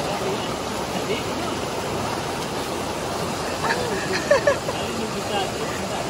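A young woman splashes while swimming through the water.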